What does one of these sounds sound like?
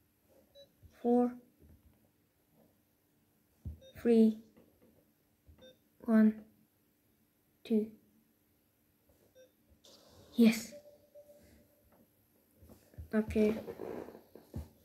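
Short electronic tones sound as panel buttons are pressed.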